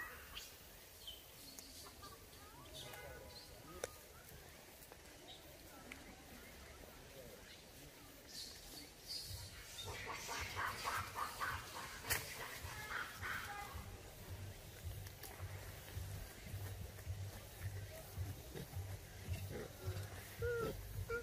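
A monkey bites into crunchy fruit and chews noisily, close by.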